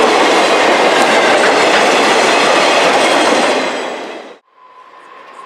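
A freight train rumbles and clatters past close by.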